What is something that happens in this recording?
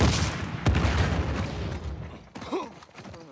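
An explosion bursts and rumbles.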